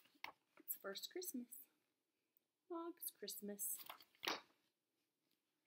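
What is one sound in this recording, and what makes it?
A young woman reads aloud calmly and expressively, close by.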